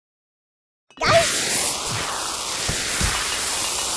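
Bubbles fizz and pop steadily.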